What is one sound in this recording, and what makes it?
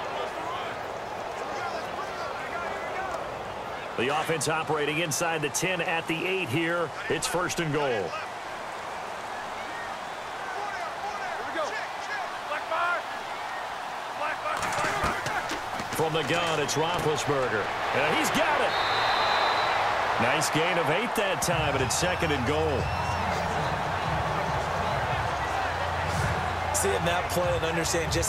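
A large stadium crowd roars and cheers, swelling louder later on.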